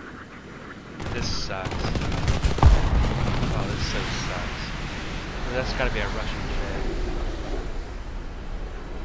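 Wind rushes loudly past an aircraft as it dives.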